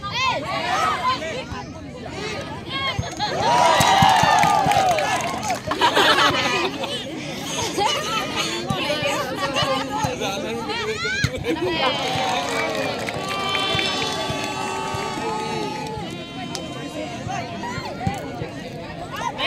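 A large outdoor crowd cheers and shouts throughout.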